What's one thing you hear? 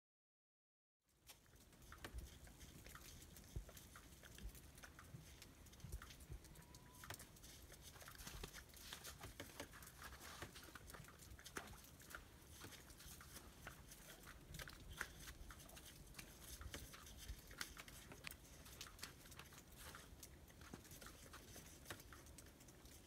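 A horse licks at a car with soft, wet smacking sounds.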